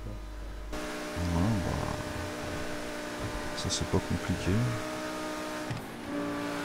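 A racing car's engine roars steadily at high speed.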